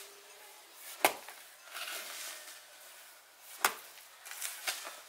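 A hoe strikes into loose soil with dull thuds.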